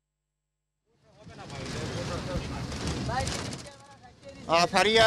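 A crowd of people chatters loudly nearby.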